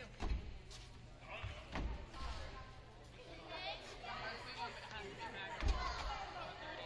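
Basketballs bounce with thuds on a wooden floor.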